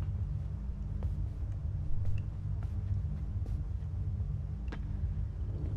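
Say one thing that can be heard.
Footsteps clank slowly on metal stairs.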